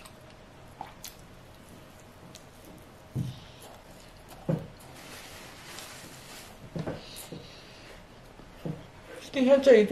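A young woman chews food noisily close to the microphone.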